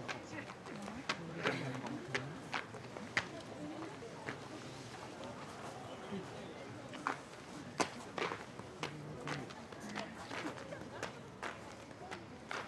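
Stiff paper streamers rustle and swish close by.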